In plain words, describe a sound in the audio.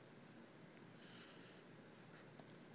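A marker squeaks softly across paper.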